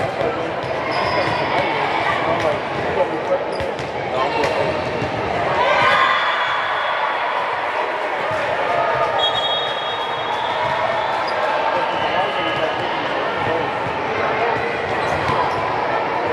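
Many voices of players and onlookers chatter and call out across a large echoing hall.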